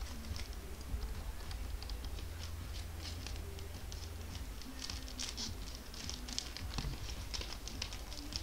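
Gloved hands shuffle and flick through stiff trading cards.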